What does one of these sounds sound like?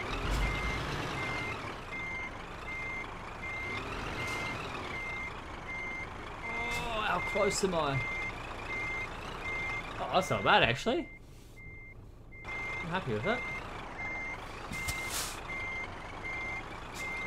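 A truck's reversing alarm beeps.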